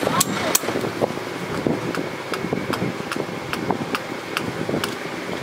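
A hammer taps lightly in a steady rhythm.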